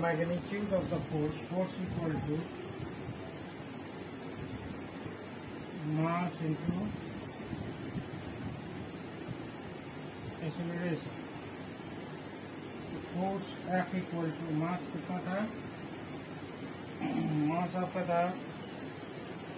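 A man speaks calmly nearby, explaining in short phrases.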